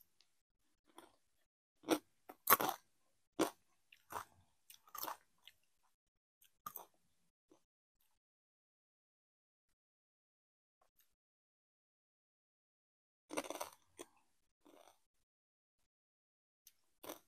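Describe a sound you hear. A young woman crunches on a crisp snack close to the microphone.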